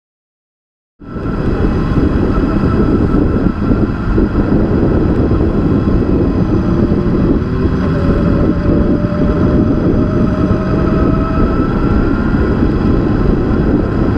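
Motorcycle engines rumble steadily nearby.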